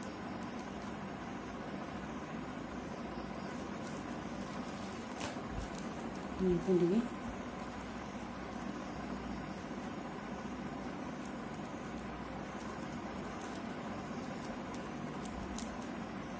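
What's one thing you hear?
Plastic strips rustle and tick as hands weave them.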